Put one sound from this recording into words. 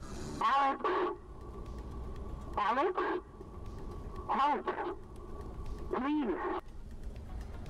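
A phone rings in short repeated bursts.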